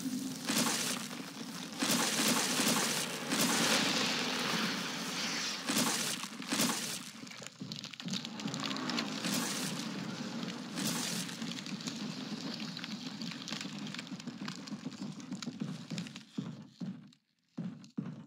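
Heavy rain pours down and splashes outdoors.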